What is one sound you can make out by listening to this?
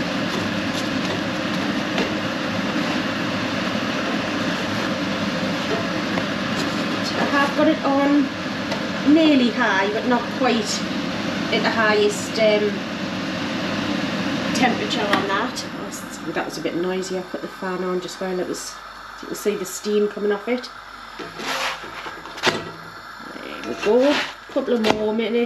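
A spatula scrapes against a pan.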